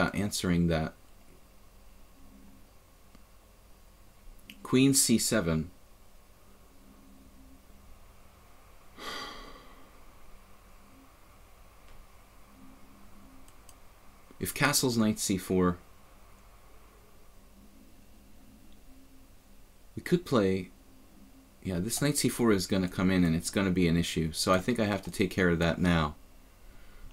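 A middle-aged man talks calmly in short bursts through a microphone.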